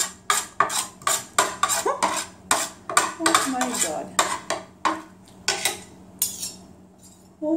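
A woman scrapes a metal fork and knife across a plate.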